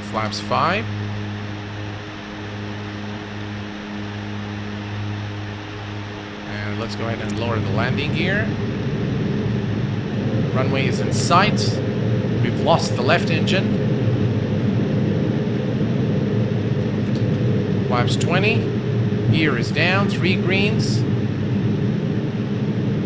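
Aircraft engines drone steadily and grow louder.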